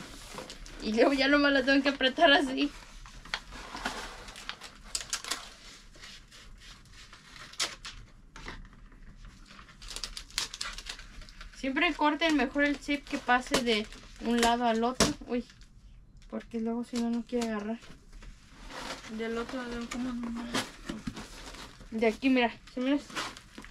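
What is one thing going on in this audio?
Cardboard boxes rustle and thump as they are handled.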